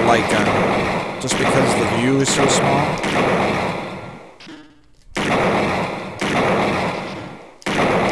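Video game sound effects whoosh in repeated noisy bursts.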